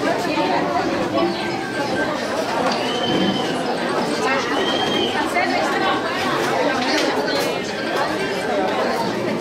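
A crowd of women and men chatter close by, many voices overlapping.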